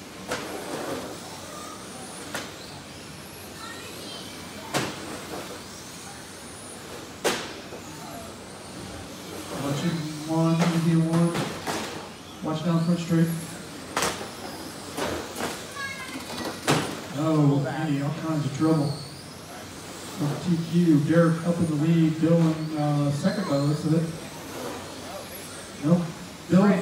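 Small electric racing cars whine past at high speed in a large echoing hall.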